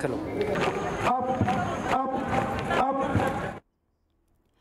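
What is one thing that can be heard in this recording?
A large crowd sings together outdoors.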